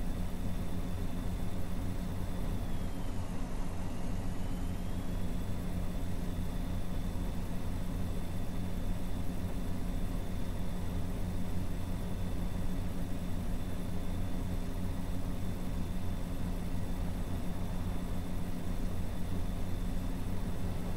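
A truck engine hums steadily at cruising speed.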